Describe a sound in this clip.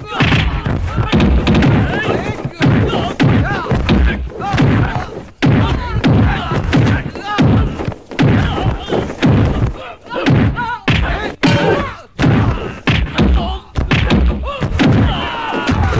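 Punches land with heavy thumps, one after another.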